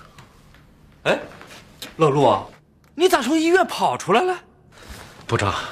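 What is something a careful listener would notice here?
A middle-aged man speaks calmly nearby.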